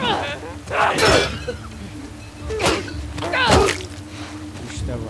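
A young woman grunts with effort.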